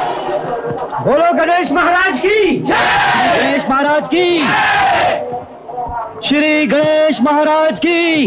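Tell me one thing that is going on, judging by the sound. A man sings loudly with feeling.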